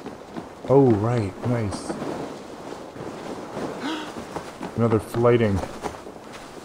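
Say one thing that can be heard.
An elderly man speaks with animation into a close microphone.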